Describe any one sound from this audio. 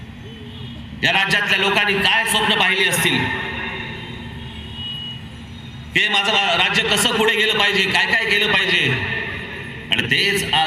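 A man speaks forcefully through loudspeakers outdoors, his voice echoing.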